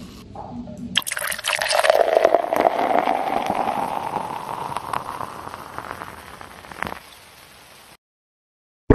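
A drink pours into a glass, the sound rising as it fills.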